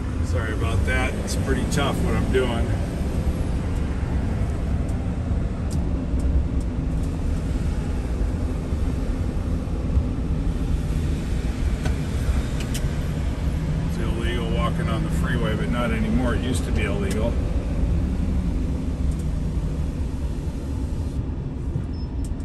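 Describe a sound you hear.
A car rumbles steadily along a highway, heard from inside.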